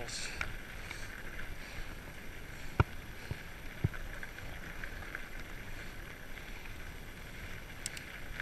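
Bicycle tyres crunch steadily over a gravel path.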